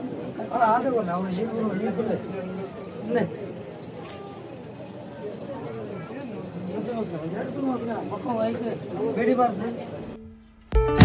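Several men talk in a murmuring crowd nearby.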